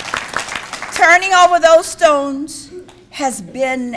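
A woman sings slowly through a microphone in an echoing hall.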